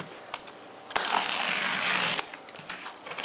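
Packing tape tears loudly off a cardboard box.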